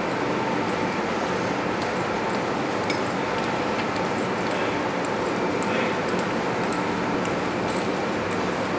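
Sailors' shoes tap on a hard deck as they march.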